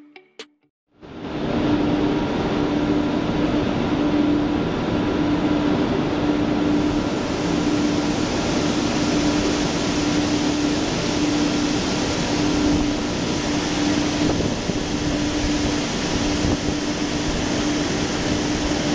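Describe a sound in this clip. A truck engine idles with a steady loud rumble.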